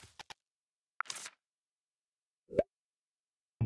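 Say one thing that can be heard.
A short soft chime sounds.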